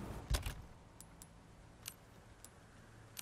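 Short electronic clicks sound one after another.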